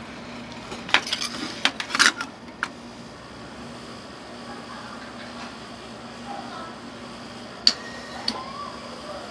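Metal scrapers clink and scrape against a metal pan.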